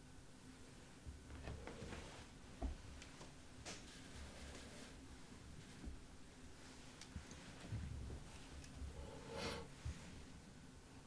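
A man speaks quietly and haltingly close to a microphone.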